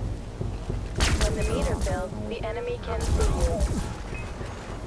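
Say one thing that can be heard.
A futuristic rifle fires rapid bursts of shots.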